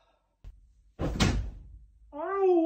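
A body thumps down onto a mattress.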